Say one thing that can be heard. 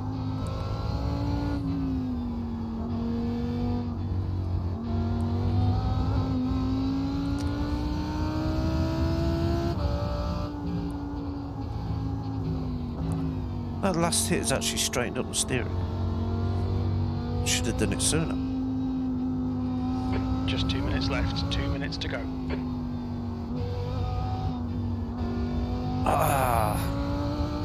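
A racing car engine roars steadily, rising and falling in pitch as the car speeds up and slows down.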